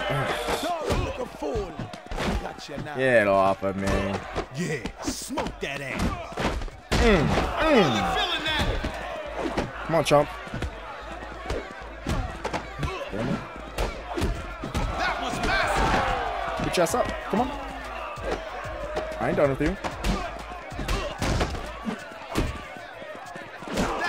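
Punches and kicks thud in a brawl.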